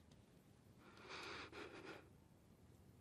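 A young woman sobs quietly.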